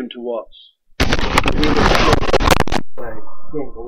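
Fabric rubs and rustles loudly against the microphone.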